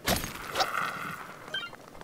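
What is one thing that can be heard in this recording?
A pickaxe strikes rock with a sharp crack.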